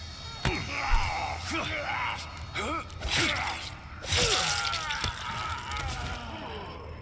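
A heavy blow lands with a wet, crunching splatter.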